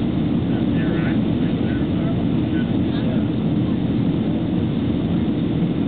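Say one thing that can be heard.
A jet engine roars steadily inside an airliner cabin.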